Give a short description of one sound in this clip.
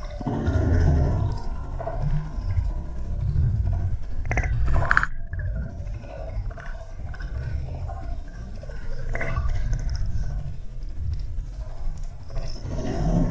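Water rushes and gurgles with a muffled underwater rumble.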